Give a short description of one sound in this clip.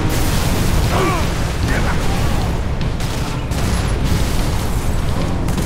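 A tank's machine gun fires rapidly and continuously.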